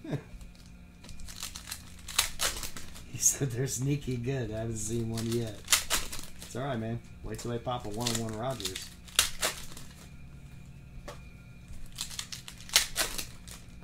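Foil card packs crinkle and tear.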